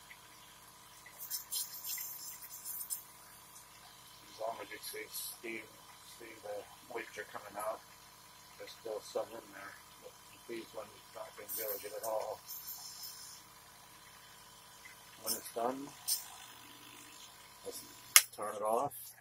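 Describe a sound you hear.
A small compressor hums steadily and then switches off.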